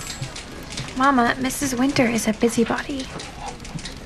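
A young woman speaks softly into a telephone close by.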